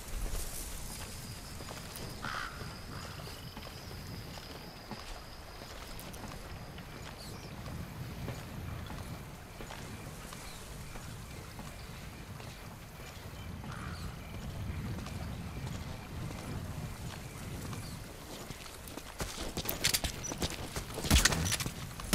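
Soft footsteps shuffle over dirt as a person creeps along.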